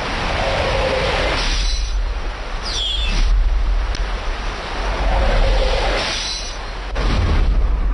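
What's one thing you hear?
A waterfall splashes and rushes into a pool.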